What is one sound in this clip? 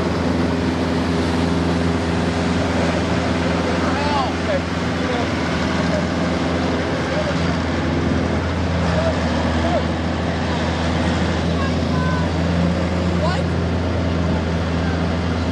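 A truck engine rumbles steadily close by.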